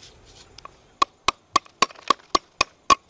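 A knife chops rapidly on a wooden board with sharp knocks.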